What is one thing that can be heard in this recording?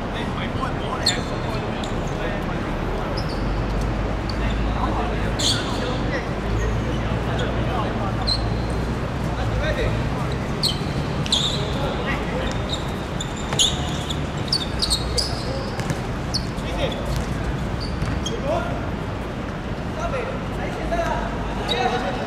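Shoes squeak sharply on a hard court.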